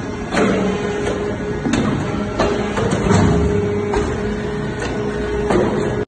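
Industrial machinery hums and rumbles loudly.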